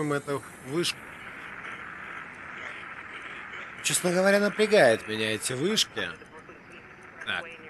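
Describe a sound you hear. A radio hisses with static as a signal is tuned.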